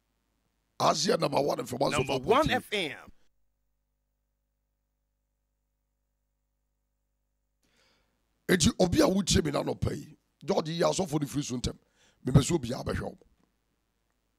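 A man talks cheerfully, in short bursts with pauses.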